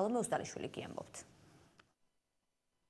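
A woman speaks clearly into a microphone, like a news presenter.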